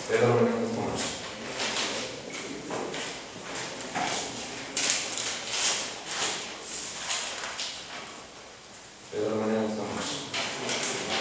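A man speaks loudly.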